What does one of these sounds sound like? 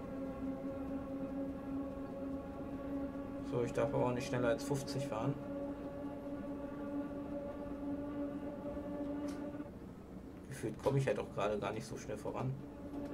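A train's electric motor hums steadily as the train runs along the track.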